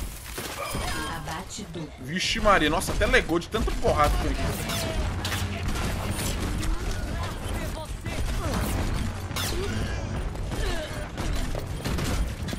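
Gunfire rattles rapidly in a video game.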